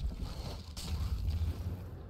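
Sparks burst with a sharp crackle.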